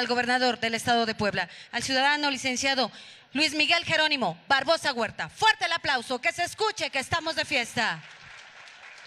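A young woman speaks loudly into a microphone, heard through loudspeakers.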